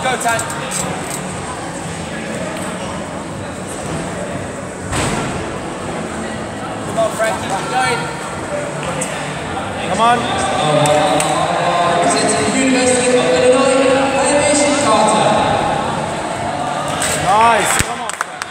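Gymnastic bars creak and thump as a gymnast swings on them.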